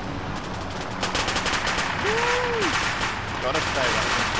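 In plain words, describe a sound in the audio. Machine guns fire in rapid bursts in the distance.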